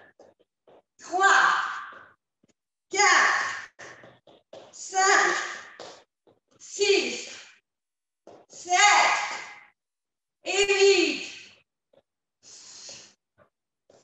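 A woman calls out short, energetic bursts of instructions close by.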